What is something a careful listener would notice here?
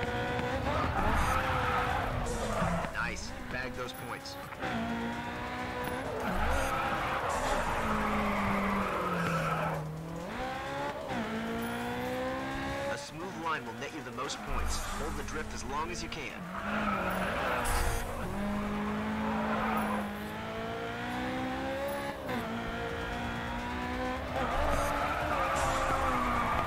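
Tyres squeal as a car drifts through corners.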